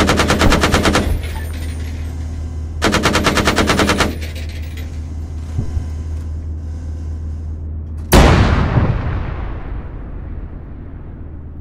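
A heavy engine hums low and steadily.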